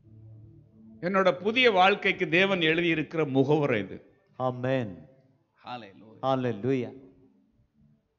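A middle-aged man speaks with animation into a microphone in short bursts.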